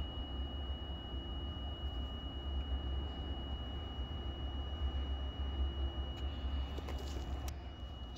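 A machine hums with a deep, steady drone close by.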